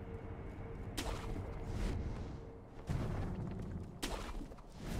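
A grappling hook zips out with a sharp whoosh several times.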